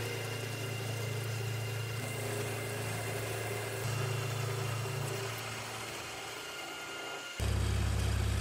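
A face mill cuts metal with a grinding hiss.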